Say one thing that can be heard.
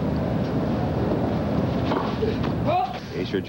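A tennis ball is struck with a racket with sharp pops.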